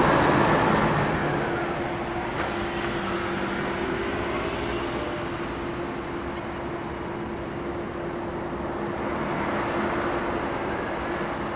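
A bus engine hums as the bus pulls away.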